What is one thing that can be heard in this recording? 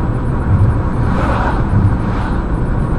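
A lorry roars past in the other direction.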